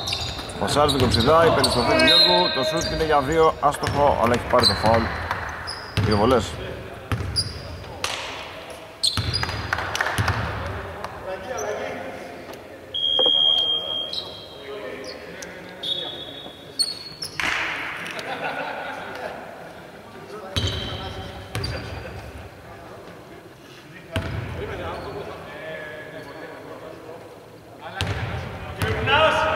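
Young men shout to one another across the court.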